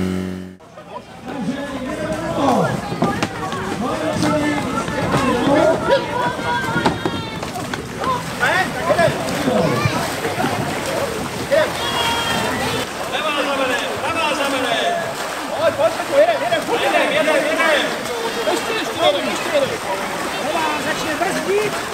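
A group of men shout and cheer with excitement.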